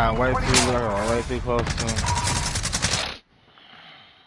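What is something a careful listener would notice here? Loud video game music and sound effects play, then cut off abruptly.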